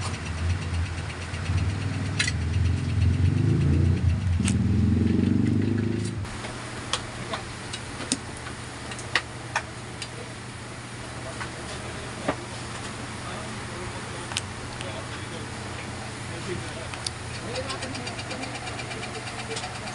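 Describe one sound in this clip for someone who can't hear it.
A cable rustles and taps as it is moved.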